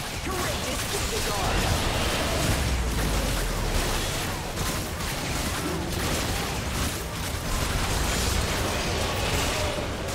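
Magic blasts and clashing blows from a video game fight crackle and boom.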